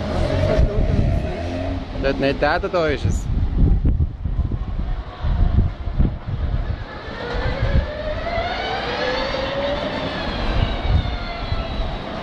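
A racing car engine roars loudly as the car speeds past.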